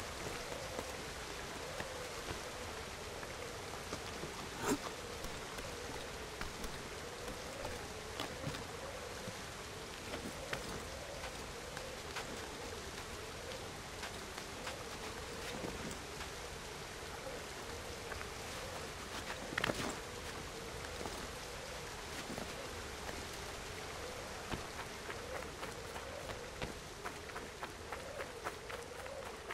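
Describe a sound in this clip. Hands and feet tap and scrape on rock during climbing.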